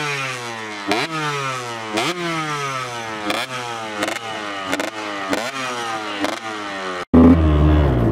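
A dirt bike engine revs up again and again, rising sharply each time.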